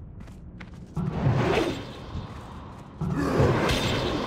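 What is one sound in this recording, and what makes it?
A magic blast whooshes and crackles loudly.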